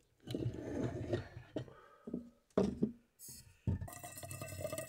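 A kettle is lifted off a metal stove with a clank.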